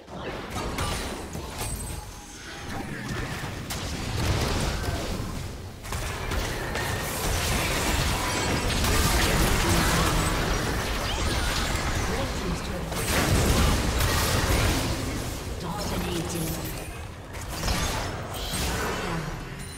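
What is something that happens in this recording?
Game spells and attacks crackle and boom in a busy fight.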